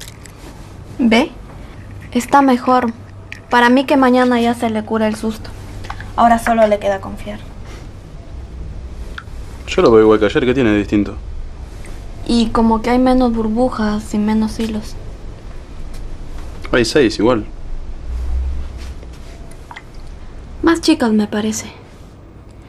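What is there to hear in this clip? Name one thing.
A young woman speaks softly and close into a microphone.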